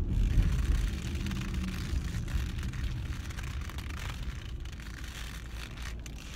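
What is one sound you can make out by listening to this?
A car engine and road noise rumble steadily from inside the car.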